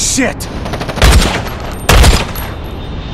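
A sniper rifle fires two loud shots, each with a booming echo.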